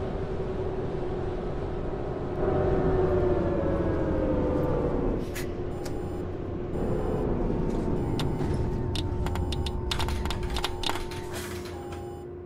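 A city bus's diesel engine drones and winds down as the bus slows.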